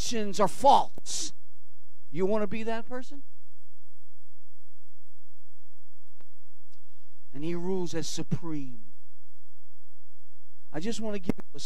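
An elderly man speaks with animation through a microphone, with long pauses.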